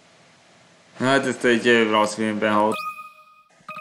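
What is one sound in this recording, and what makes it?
A short cheerful game jingle plays.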